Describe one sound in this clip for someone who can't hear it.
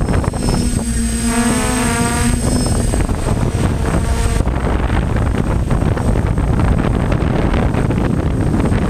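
Wind buffets the microphone with a low, rough rumble.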